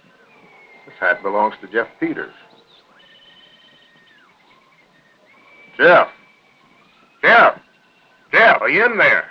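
A man speaks in short, firm bursts.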